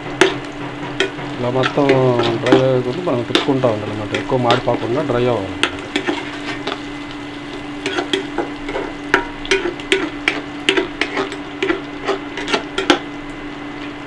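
A metal spatula scrapes and clinks against a pan.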